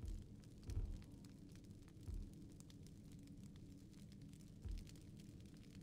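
Soft menu thuds sound now and then.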